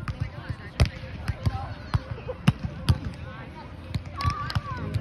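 A volleyball is hit with dull thumps in the distance.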